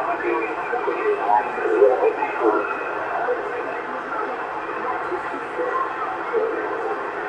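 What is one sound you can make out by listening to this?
A radio receiver crackles and hisses with static through a loudspeaker.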